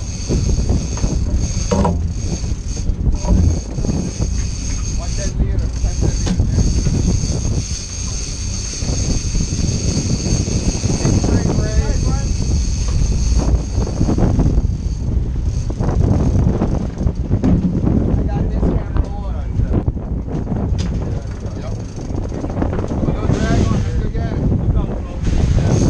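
Wind blows across the deck outdoors.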